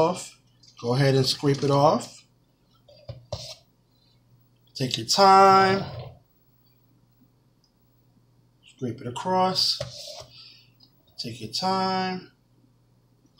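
A man talks close by in short bursts.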